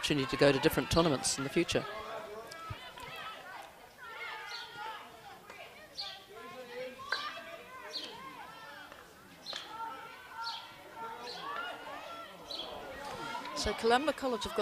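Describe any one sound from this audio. Hockey sticks strike a ball with sharp cracks.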